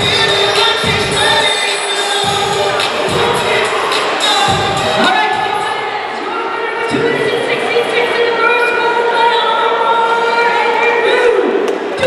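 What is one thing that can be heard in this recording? A woman announces through a loudspeaker in a large echoing hall.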